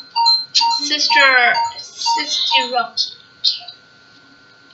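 Short electronic chimes and ticks play rapidly as a game selection spins.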